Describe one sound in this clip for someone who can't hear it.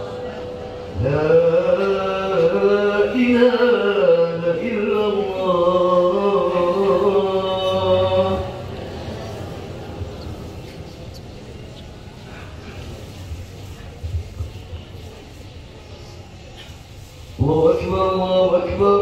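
A man sings into a microphone through loudspeakers, echoing in an open space.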